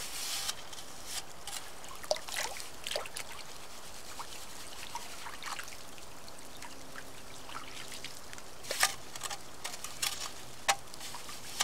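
Water splashes as a scoop dips into a shallow stream.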